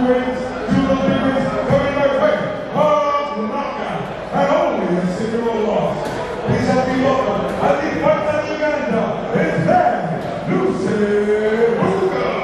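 A man speaks loudly in a large echoing hall.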